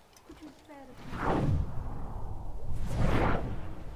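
Wind rushes past during a long fall.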